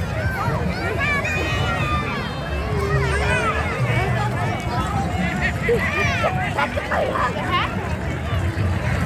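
Children on a parade float shout and cheer excitedly.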